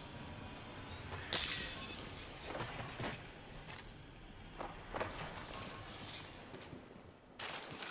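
Footsteps thud quickly on a hard metal floor.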